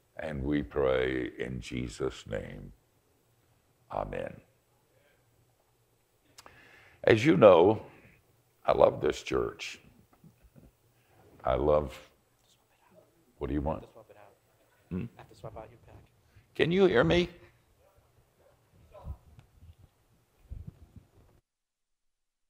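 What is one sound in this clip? An elderly man speaks calmly into a microphone, with pauses.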